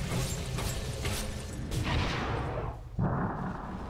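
Magic blasts and clashing strikes burst in a fast fight.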